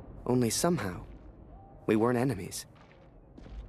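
A man speaks with feeling, close by.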